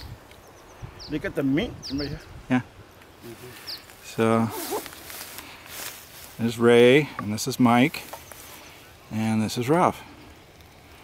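A man talks with animation close by, outdoors.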